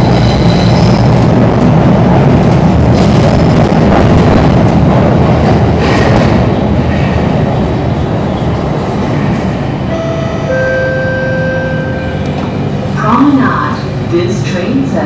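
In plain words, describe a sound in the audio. A train rumbles loudly along the tracks and gradually slows down.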